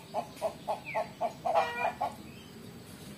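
A rooster clucks in quick, loud bursts.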